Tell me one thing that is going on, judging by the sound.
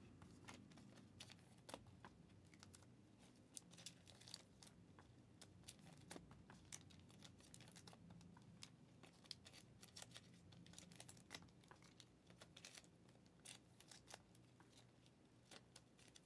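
Hands handle cards and packaging close by, with light clicks and rustles.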